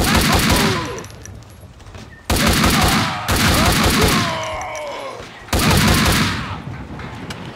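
Gunshots ring out loudly and echo.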